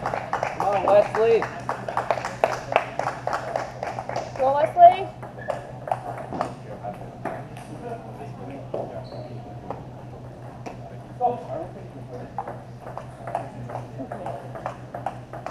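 Table tennis balls click rapidly against paddles and tables in an echoing hall.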